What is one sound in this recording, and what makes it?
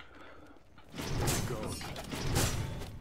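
Magic blasts burst and crackle in a fight.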